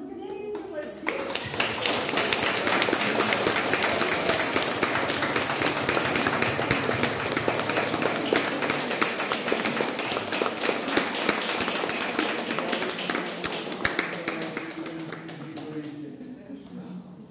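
Several elderly women clap their hands in rhythm.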